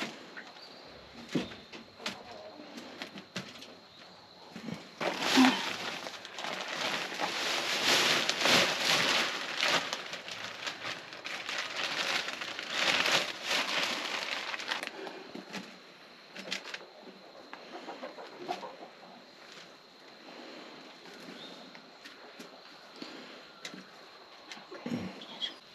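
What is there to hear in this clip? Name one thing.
Hands pat and rustle through loose soil.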